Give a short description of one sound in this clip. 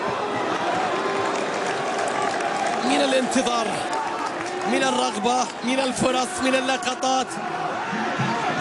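A large crowd roars and chants in a stadium.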